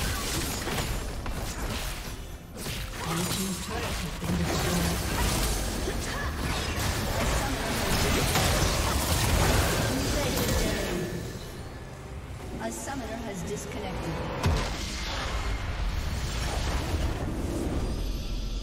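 Magic blasts, clashing weapons and explosions crackle through a fierce battle.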